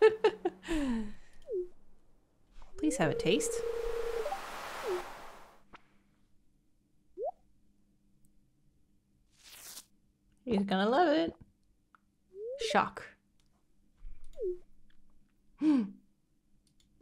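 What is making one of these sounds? A young woman talks with animation, close to a microphone, in short bursts.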